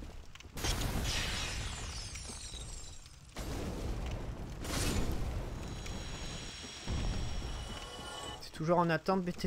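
Magic blasts whoosh and crackle in bursts.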